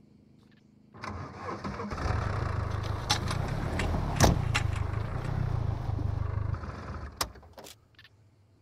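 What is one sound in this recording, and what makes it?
A car engine starts and runs, revving as the car drives.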